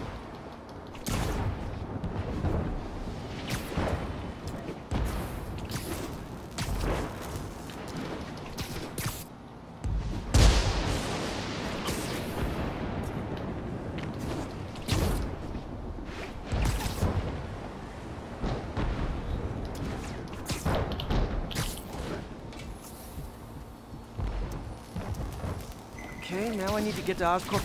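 Web lines shoot and snap with quick whooshes, over and over.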